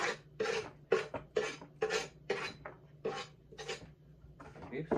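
A knife scrapes food off a wooden cutting board in quick repeated strokes.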